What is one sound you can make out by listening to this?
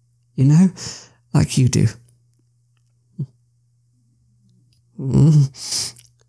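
A young man speaks in short bursts, close to a microphone.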